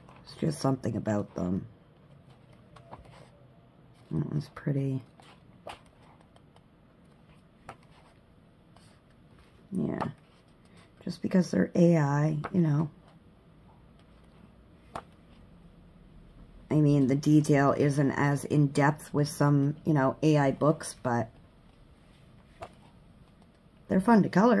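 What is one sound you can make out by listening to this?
Paper pages turn with a soft rustle.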